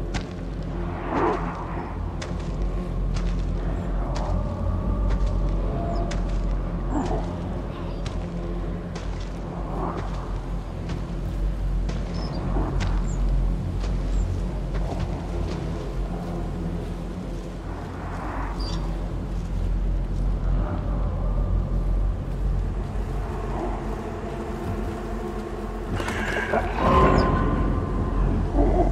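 Footsteps crunch slowly through leaves and grass.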